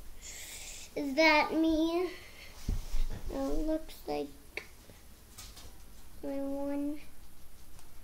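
A young boy talks in a high voice close by.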